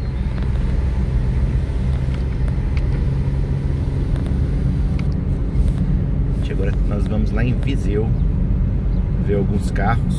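A car engine hums steadily with road rumble from inside the car.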